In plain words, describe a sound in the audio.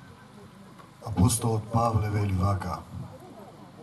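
A man chants in a deep voice outdoors.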